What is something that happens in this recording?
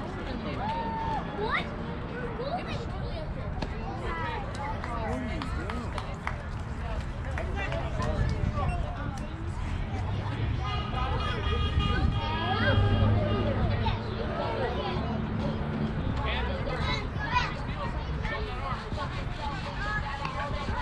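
Children and adults shout and cheer from across an open field.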